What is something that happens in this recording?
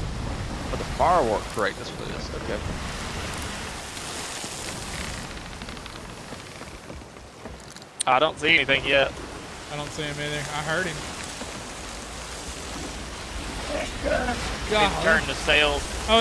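Ocean waves crash and roar around a ship.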